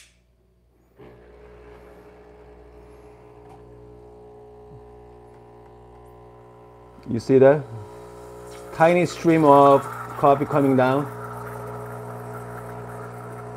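An espresso machine's pump hums steadily.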